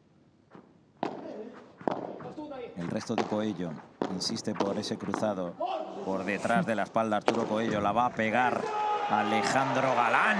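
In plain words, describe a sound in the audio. Rackets hit a ball back and forth with sharp pops.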